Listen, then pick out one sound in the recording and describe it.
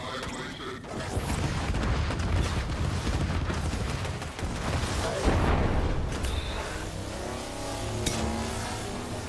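Gunfire and explosions crackle and boom loudly.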